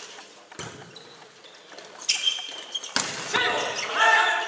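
A volleyball is struck with sharp smacks that echo through a large hall.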